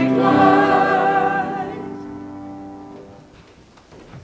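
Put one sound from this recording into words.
A woman sings a held note through a microphone, then the sound fades away.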